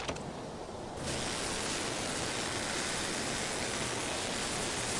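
A welding torch hisses and crackles steadily.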